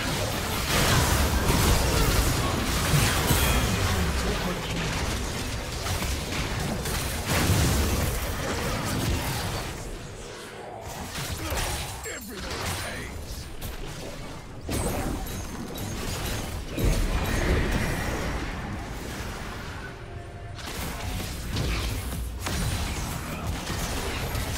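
Game spell effects and combat sounds clash and burst.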